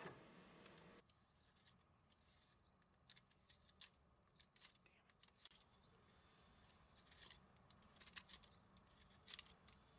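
A knife shaves thin curls from wood with short scraping strokes.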